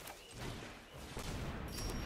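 A magical zap whooshes across.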